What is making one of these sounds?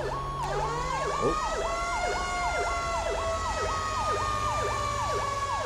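A heavy truck engine rumbles steadily.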